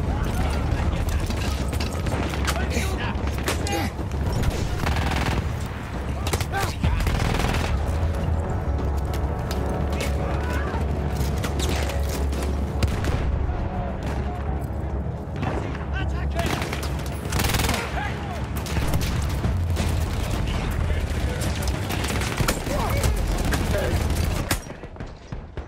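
A low rumble of battle roars steadily.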